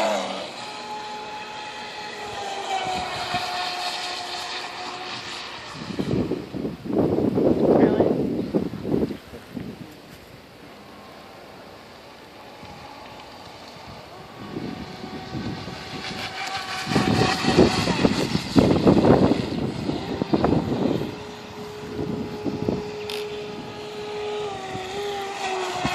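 A small motor whines steadily as a model boat speeds across water, rising and falling in pitch.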